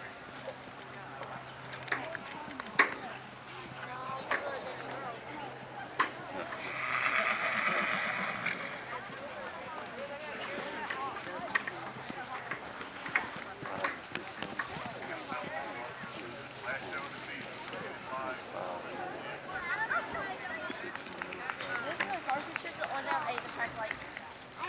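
A horse's hooves thud on soft dirt at a canter.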